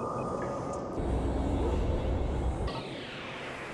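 A deep whooshing blast sounds as a spaceship jumps away.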